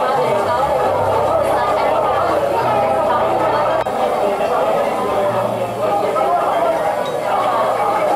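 Several middle-aged and elderly women talk and laugh close by.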